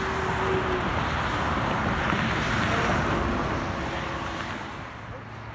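A tanker truck rumbles past loudly and fades away.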